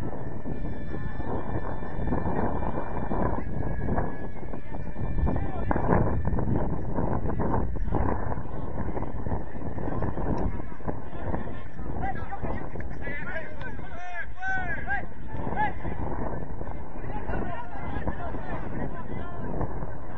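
Men shout to each other across an outdoor playing field.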